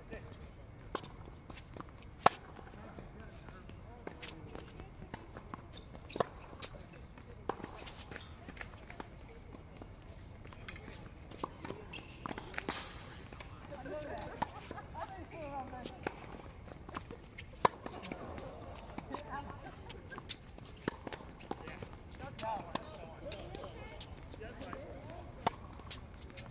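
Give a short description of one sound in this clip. Tennis balls are struck with rackets, with sharp pops at intervals.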